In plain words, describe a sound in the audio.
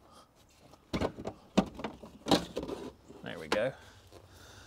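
A metal panel clanks and rattles as it is pulled off.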